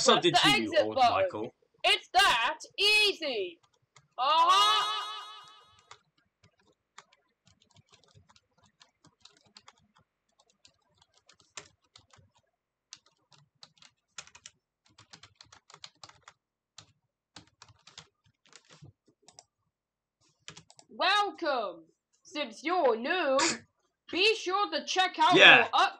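A man's synthetic, computer-made voice speaks in short bursts, close up.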